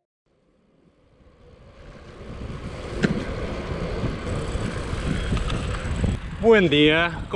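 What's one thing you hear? Wind rushes past a moving bicycle.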